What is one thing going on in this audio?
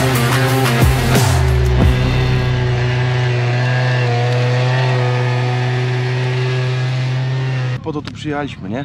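A scooter engine idles and revs close by.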